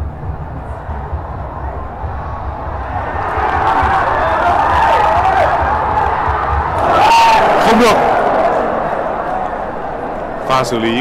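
A large crowd roars and cheers loudly.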